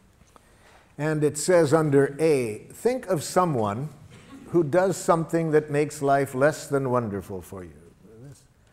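An elderly man speaks calmly and clearly through a close microphone.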